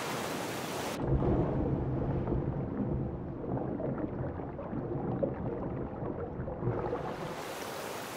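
Water rumbles and bubbles, muffled as if heard underwater.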